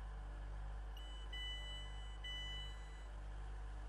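A door chime beeps a few times.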